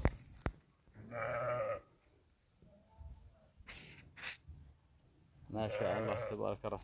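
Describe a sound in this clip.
Sheep bleat loudly nearby.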